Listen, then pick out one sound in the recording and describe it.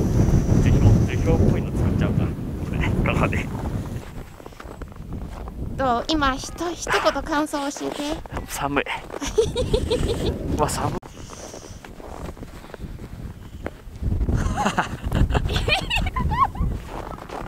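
Strong wind gusts and roars outdoors.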